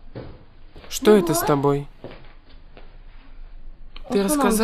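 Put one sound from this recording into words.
A woman speaks firmly nearby.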